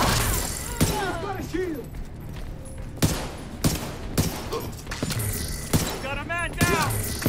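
Gunshots ring out in separate sharp bursts.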